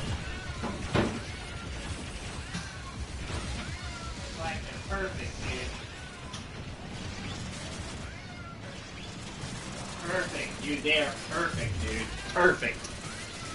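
Cartoonish blaster shots fire in short bursts.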